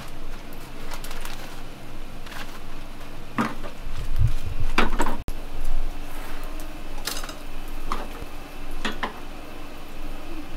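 Noodles sizzle in a hot pan.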